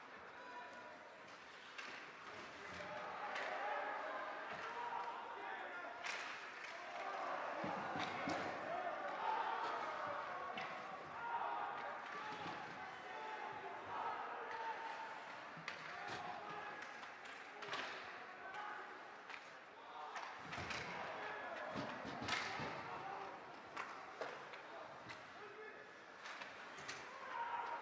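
A crowd murmurs and cheers in an echoing rink.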